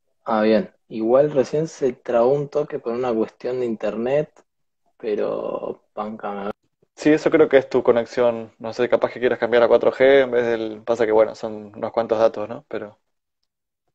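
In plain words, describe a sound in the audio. A young man talks calmly and casually over an online call.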